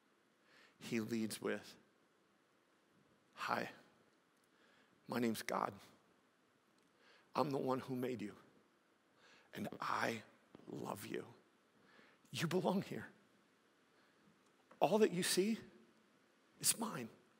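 A man speaks with animation through a headset microphone, pausing between phrases.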